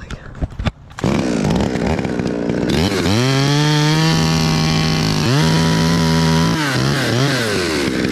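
A chainsaw revs loudly and cuts into wood close by.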